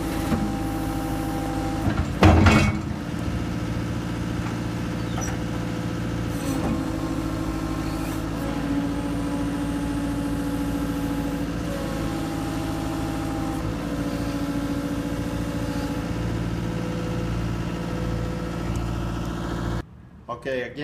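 A skid steer loader's diesel engine runs loudly and steadily.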